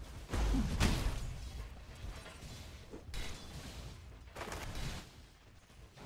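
Magic spell effects whoosh and crackle in short bursts.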